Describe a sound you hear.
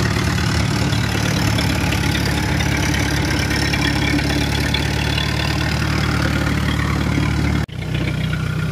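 Metal tracks clank and rattle over dirt.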